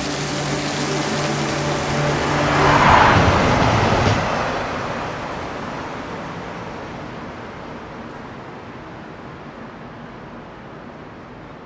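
A subway train rushes past with a loud rumble and then fades away into the distance.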